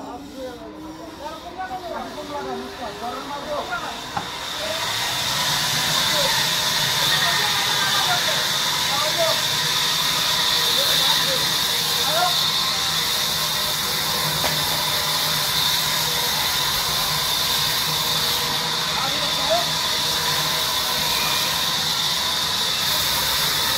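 A machine belt whirs steadily.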